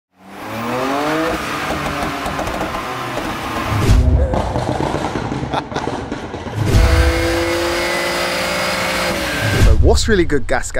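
A car engine revs hard and roars loudly.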